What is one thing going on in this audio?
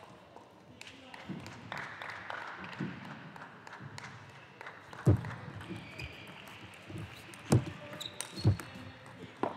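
A ball clicks sharply back and forth across a table in a rally.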